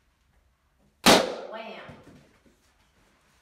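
A balloon bursts with a loud bang.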